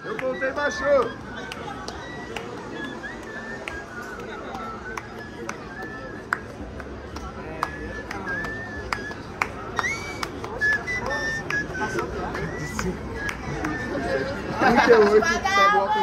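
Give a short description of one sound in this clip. A crowd of young people cheers and shouts.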